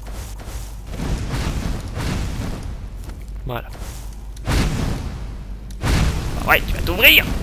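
Flames whoosh and crackle in bursts.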